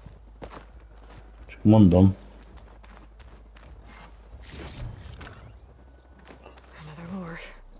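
Footsteps run over dirt and grass.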